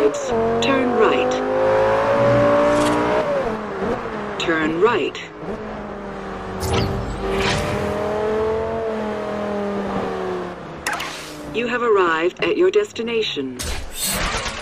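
A sports car engine roars and revs up and down.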